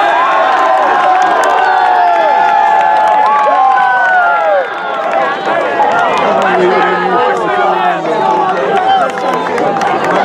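Young players shout to each other in the distance across an open field.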